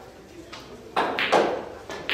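A cue stick strikes a billiard ball with a sharp click.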